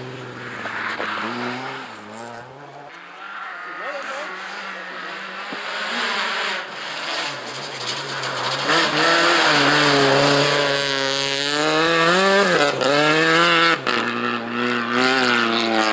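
A rally car engine revs hard, growing louder as the car approaches and passes close by.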